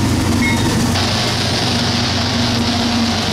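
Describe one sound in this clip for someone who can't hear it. Train wheels roar and clatter on the rails as the locomotives pass close by.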